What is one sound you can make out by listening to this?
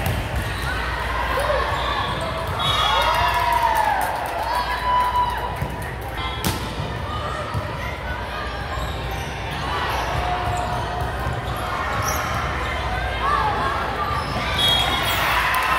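Sneakers squeak sharply on the hardwood floor.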